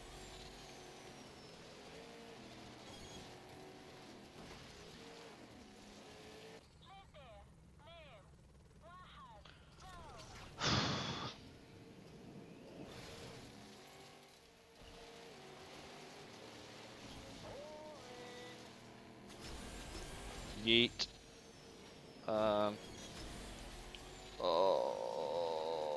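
A racing car engine hums and revs steadily.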